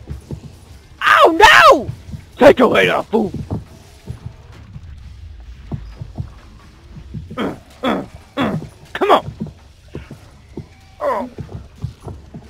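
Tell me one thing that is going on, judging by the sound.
Monsters shriek and growl close by.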